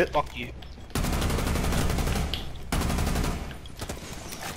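Rapid gunshots fire in long bursts.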